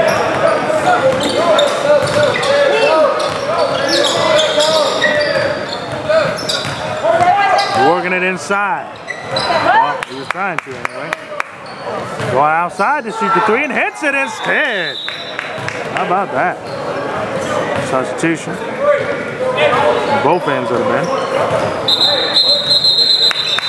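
A crowd of spectators talks and calls out in a large echoing gym.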